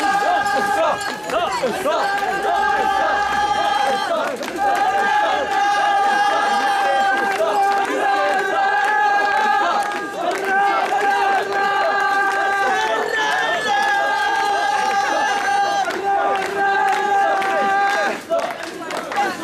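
A large crowd of men chants loudly and rhythmically outdoors.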